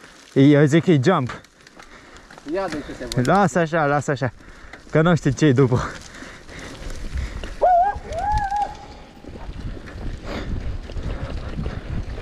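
Bicycle tyres roll and rattle over a bumpy dirt trail.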